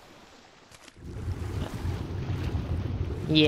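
Water rumbles deep and muffled, as if heard from underwater.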